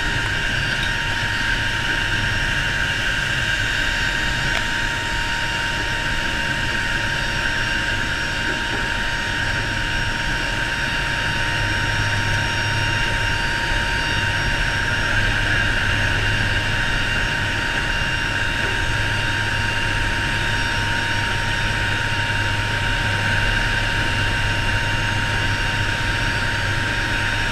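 Aircraft engines drone loudly and steadily.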